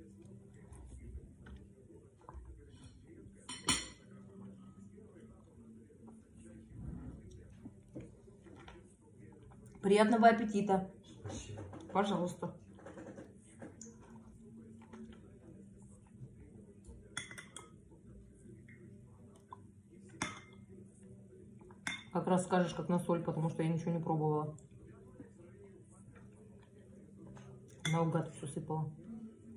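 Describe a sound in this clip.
A young woman chews and slurps food.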